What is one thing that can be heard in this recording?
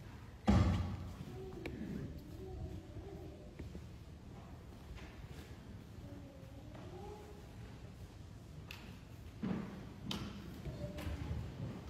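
A man speaks calmly in an echoing hall.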